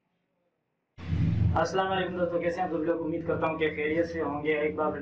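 A young man speaks close to a microphone, calmly and clearly.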